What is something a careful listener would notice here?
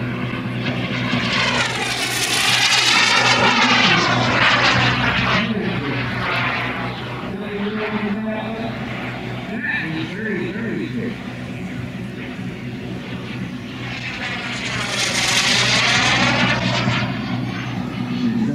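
A model jet roars loudly as it flies past overhead, its whine sweeping in pitch.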